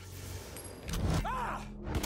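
A heavy punch thuds against a body.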